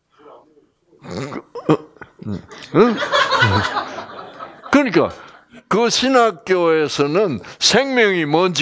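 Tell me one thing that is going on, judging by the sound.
An elderly man speaks with animation.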